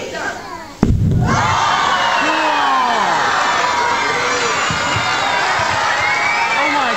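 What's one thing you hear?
A crowd of children screams and cheers excitedly.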